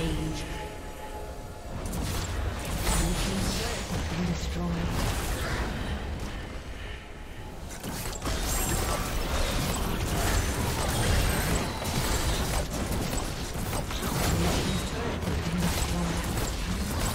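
Small fight impacts and sword strikes clash repeatedly.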